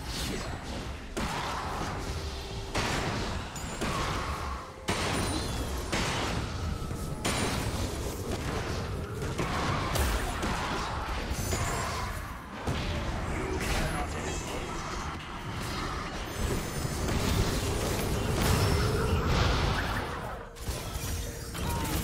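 Magic blasts whoosh and crackle in a fantasy battle.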